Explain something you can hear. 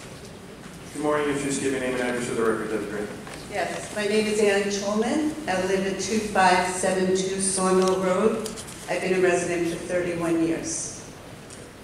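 A woman speaks steadily into a microphone, heard over loudspeakers in a large room.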